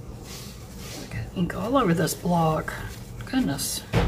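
Tissue paper rustles and crinkles.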